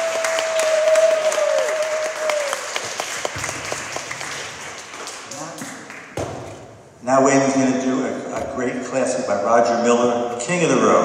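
Acoustic guitars play a tune in a large echoing hall.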